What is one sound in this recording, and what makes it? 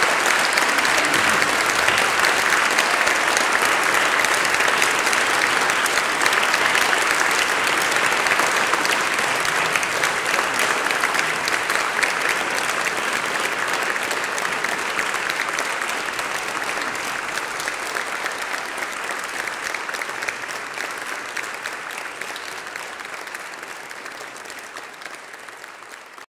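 An audience applauds loudly in an echoing hall, then slowly fades.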